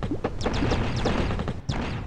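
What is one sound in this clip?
A cartoon explosion bursts.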